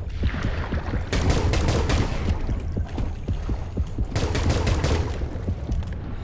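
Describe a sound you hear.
A gun fires a rapid burst of shots underwater.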